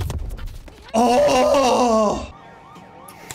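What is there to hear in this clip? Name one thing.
A young man shouts excitedly into a microphone.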